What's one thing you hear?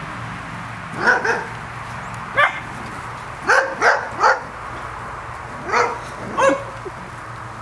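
Puppies yip and yelp in short bursts.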